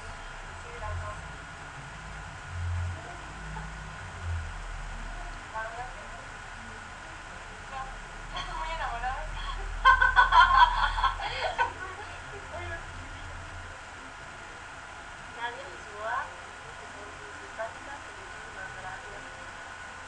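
A young woman talks casually into a webcam microphone.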